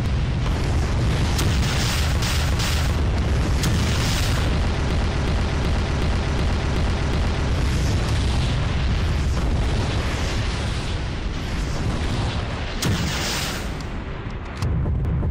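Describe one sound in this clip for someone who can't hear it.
A huge explosion rumbles deeply and steadily.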